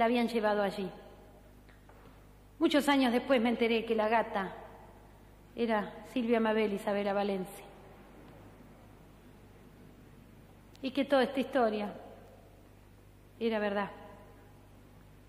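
A woman speaks into a microphone in short, halting phrases with long pauses between them.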